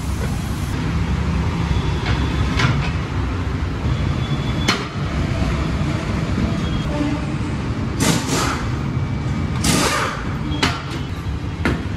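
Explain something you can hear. A tyre changing machine hums and clanks as metal parts knock against a wheel.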